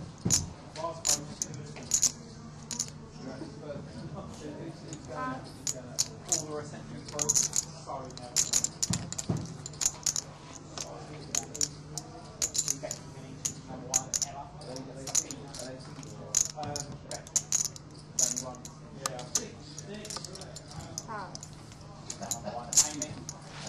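Poker chips click as players riffle them in their hands.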